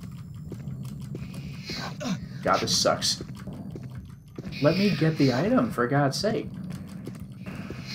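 A creature growls and screeches.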